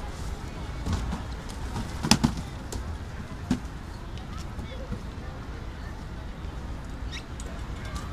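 Cardboard boxes thump and scrape as they are loaded onto carts.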